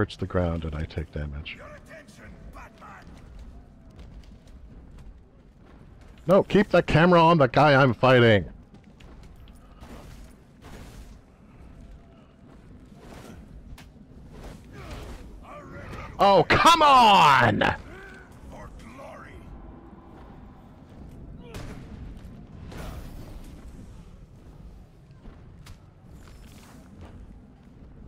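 Heavy punches and thuds land in a fight.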